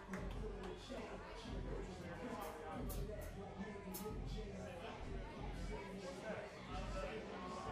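A man sings into a microphone through loudspeakers.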